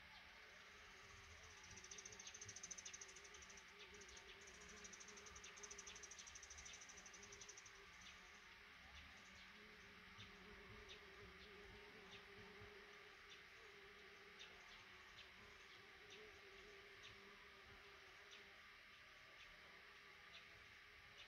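Baby birds cheep in short, high peeps again and again.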